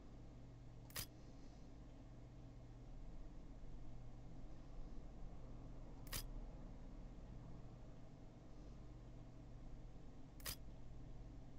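A short menu click sounds a few times.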